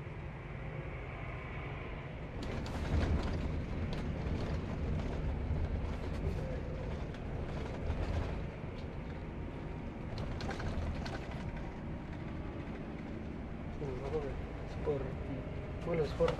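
A bus engine hums steadily from inside the cabin.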